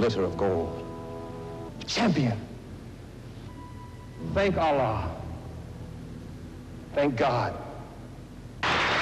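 An elderly man speaks forcefully into a microphone.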